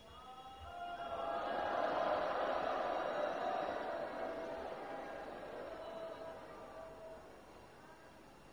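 A man chants in a long, drawn-out voice through a loudspeaker.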